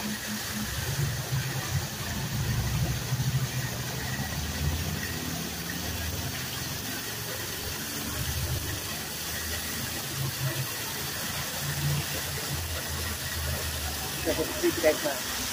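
A small waterfall splashes steadily onto rocks.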